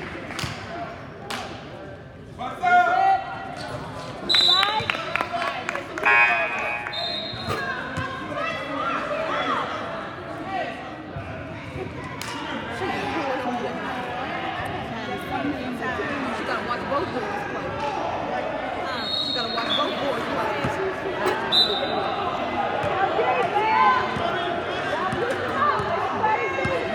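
Teenage boys talk and call out in a large echoing hall.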